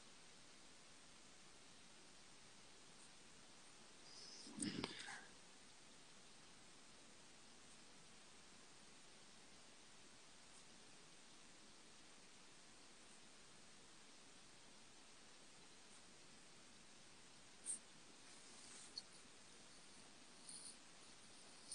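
Pens scratch softly on paper.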